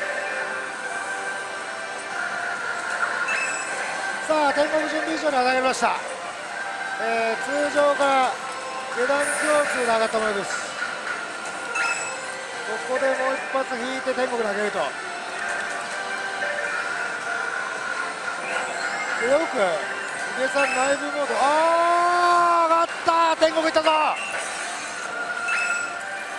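A slot machine plays bright electronic jingles and tones.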